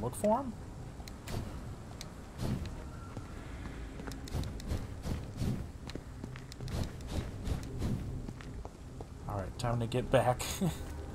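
Footsteps hurry over hard ground.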